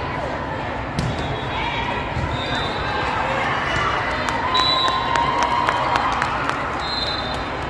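A volleyball is struck with a loud smack.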